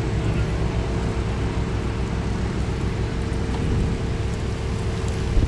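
A horse's hooves thud softly on dirt at a walk.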